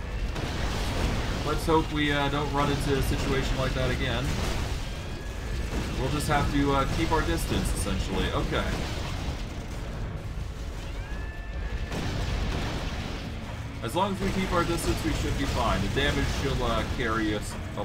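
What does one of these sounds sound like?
Magic blasts and fiery spells crackle and boom in a fight.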